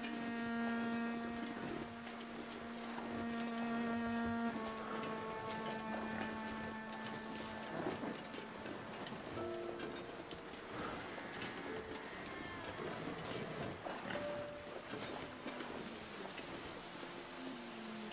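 Footsteps crunch through snow at a steady walking pace.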